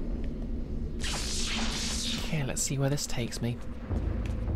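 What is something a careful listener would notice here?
A young woman speaks into a microphone close by.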